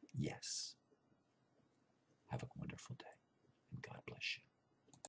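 An older man speaks calmly and close to a microphone, in short bursts.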